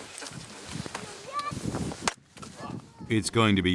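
Firewood logs knock and clatter against each other.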